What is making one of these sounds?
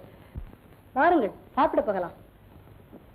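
A woman speaks a few short, emotional words, heard through an old, thin-sounding recording.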